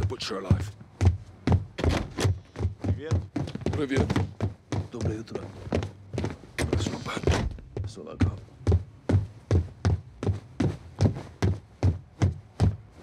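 Footsteps thud steadily down wooden stairs.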